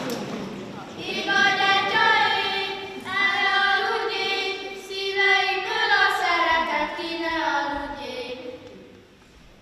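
A child speaks clearly through a microphone in an echoing hall.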